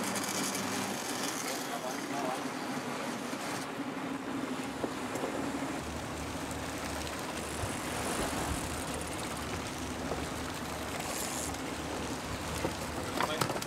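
A boat's engine hums steadily.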